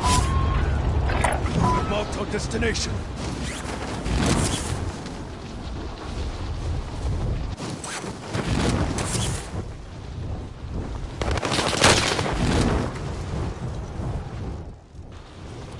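Wind rushes loudly during a freefall.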